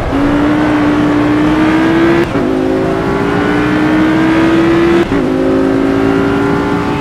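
A racing car engine roars, climbing in pitch and dropping with each gear change.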